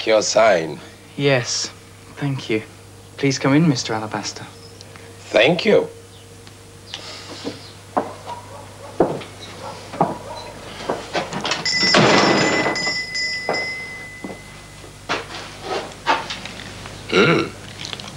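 A man talks in a low voice nearby.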